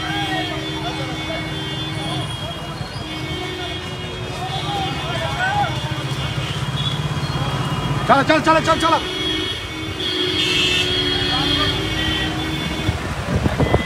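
Vehicle horns honk repeatedly in busy traffic.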